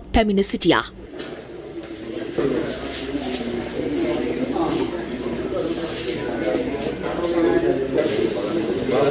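A crowd of people murmurs and talks at once.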